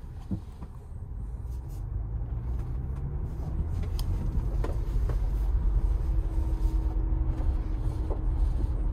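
A car starts rolling and its engine and road noise grow louder.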